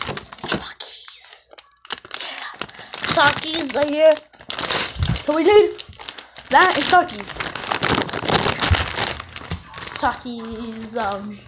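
A plastic snack bag crinkles as it is handled.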